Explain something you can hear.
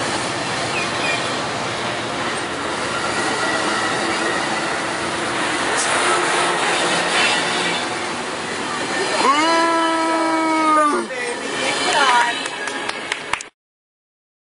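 A passenger train rolls past close by with a loud, steady rumble.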